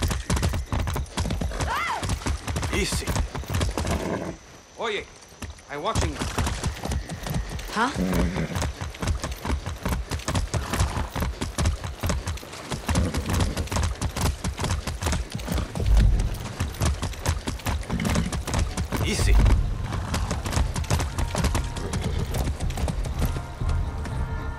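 Horse hooves clop steadily on a road.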